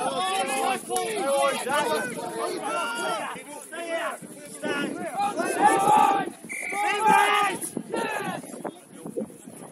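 Men shout loudly to each other outdoors, some distance away.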